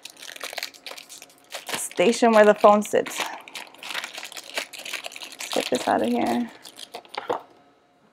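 A plastic wrapper crinkles and rustles in someone's hands.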